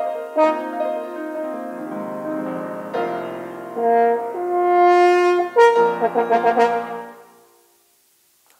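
A piano plays along with a horn.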